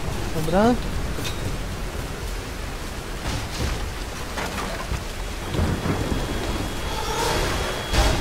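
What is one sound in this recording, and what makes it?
Rain pours down steadily.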